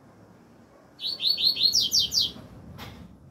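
A double-collared seedeater sings a rapid trilled song.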